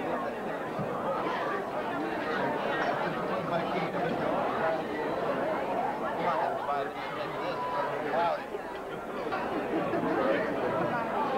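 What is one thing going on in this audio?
A crowd of men and women chatter and talk over one another.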